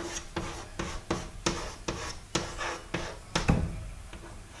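Chalk taps and scrapes on a chalkboard.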